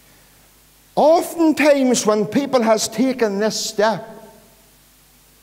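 A middle-aged man speaks with animation through a microphone in an echoing hall.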